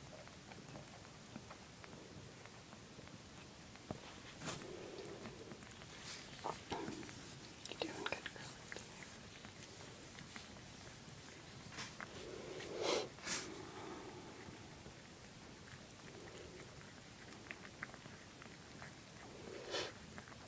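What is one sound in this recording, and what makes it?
A mother cat licks a newborn kitten with soft, wet sounds.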